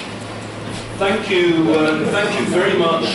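A second man speaks into a microphone in a large room.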